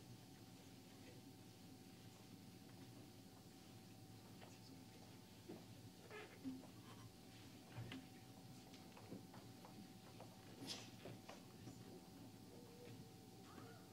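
Footsteps shuffle as people walk between rows of chairs.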